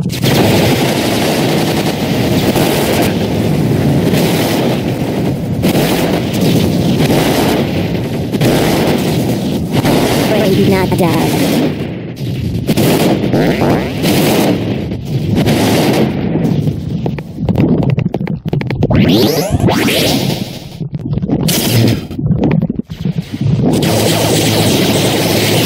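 A toy blaster fires bursts of shots again and again.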